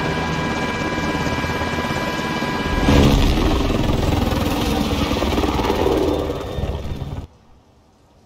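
A helicopter engine roars steadily with rotor thumping.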